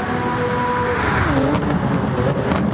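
A racing car engine drops in pitch as the car shifts gear and pulls away.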